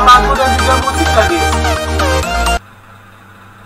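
Game music and battle effects play loudly.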